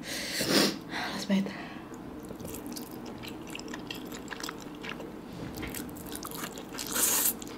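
A young woman slurps noodles loudly and chews close to a microphone.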